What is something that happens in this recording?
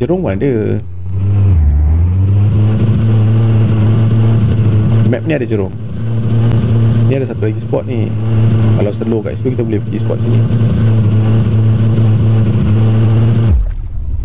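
A boat engine revs up and roars steadily.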